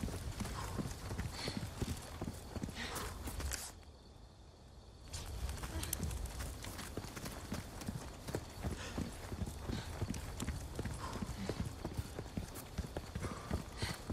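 Footsteps run quickly over gravel and stone.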